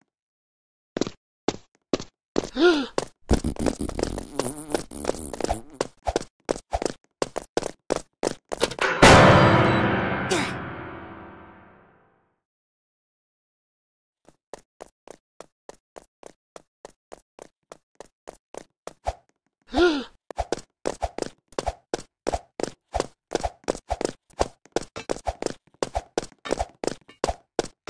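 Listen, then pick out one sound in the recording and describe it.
Quick footsteps patter steadily on the ground.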